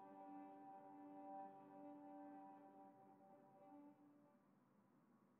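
A violin plays a sustained note and fades away.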